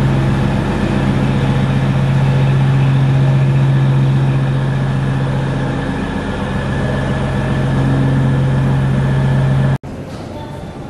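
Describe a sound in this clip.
A stationed train's engine hums steadily.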